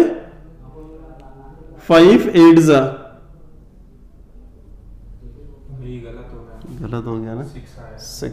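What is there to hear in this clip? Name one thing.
A man explains calmly, close to a microphone.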